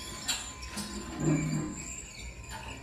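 A heavy wooden trapdoor creaks open.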